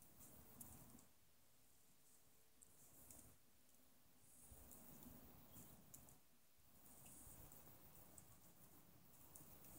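Water boils and bubbles in a pot.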